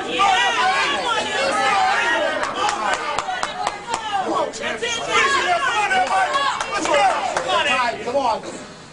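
A crowd of men shout encouragement.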